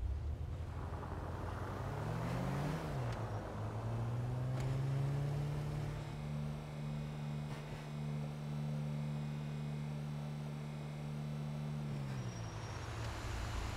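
A van engine hums and revs as it drives.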